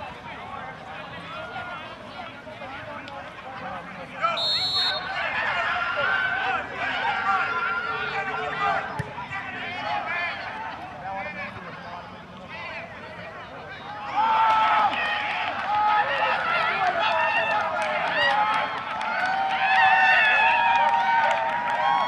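Men shout and call to each other across an open field.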